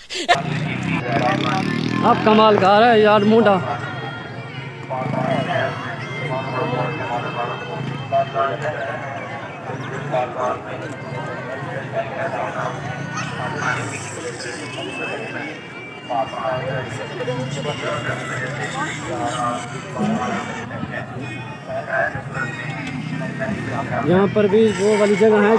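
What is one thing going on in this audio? A crowd of men, women and children chatter and call out all around outdoors.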